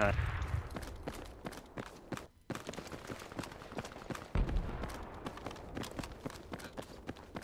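Footsteps tap quickly and steadily on hard ground.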